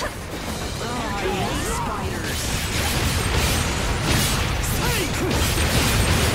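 Loud energy blasts and heavy impacts crash in a fight.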